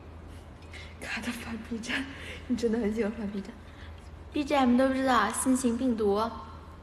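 A young woman speaks close by, softly and with animation.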